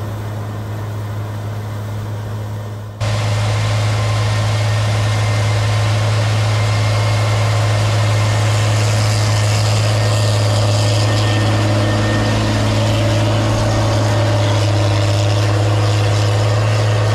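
A large harvester engine drones steadily.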